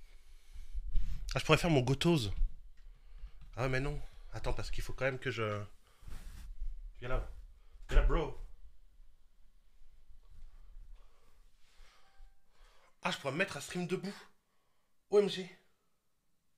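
A man speaks close to a microphone, in short bursts with animation.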